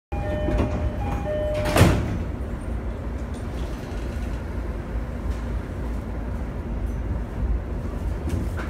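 A train rumbles low and steadily.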